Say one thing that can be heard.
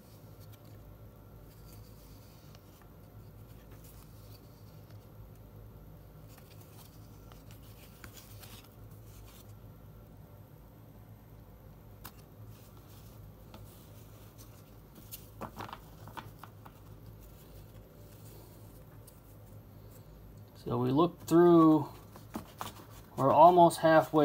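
Cardboard cards rustle and tap softly as hands sort through them.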